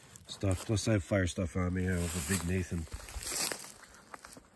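Hands rummage through a bag, rustling plastic.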